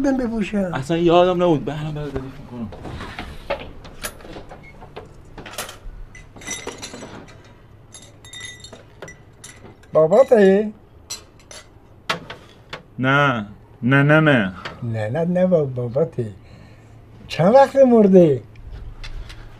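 An elderly man speaks into a microphone up close.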